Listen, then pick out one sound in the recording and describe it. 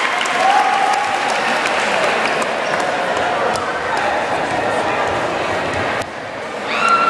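Young women shout a cheer together.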